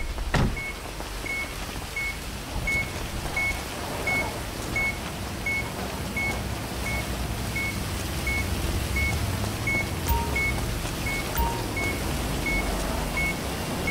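Footsteps walk on a hard surface.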